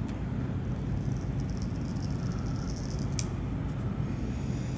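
A paper backing peels off a sticky label.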